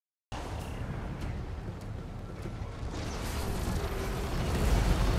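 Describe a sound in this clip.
Fighting sounds clash and thud in a game battle.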